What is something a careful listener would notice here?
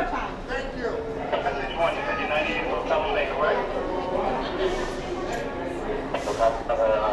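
A man talks close by in a calm, firm voice.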